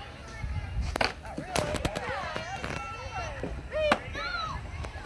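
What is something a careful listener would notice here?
A stomp rocket launches with a sharp pop.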